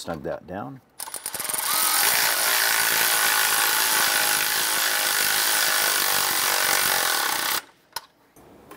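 A cordless power ratchet whirs steadily as it spins a bolt.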